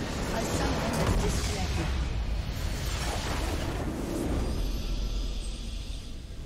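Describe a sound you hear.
A large game explosion booms and rumbles.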